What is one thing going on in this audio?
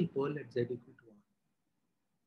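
A man speaks calmly through a microphone on an online call.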